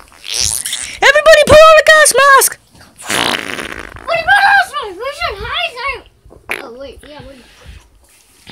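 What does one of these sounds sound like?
A squeaky plush toy squeaks and chirps as a hand squeezes it.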